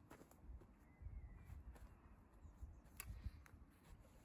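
Footsteps shuffle on grass close by.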